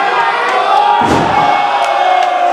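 A wrestler's body slams heavily onto the ring mat with a loud thud.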